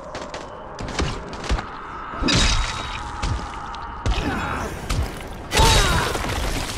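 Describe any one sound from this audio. A heavy blade strikes a body with dull, wet thuds.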